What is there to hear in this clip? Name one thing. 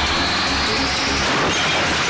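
A car engine revs and tyres screech.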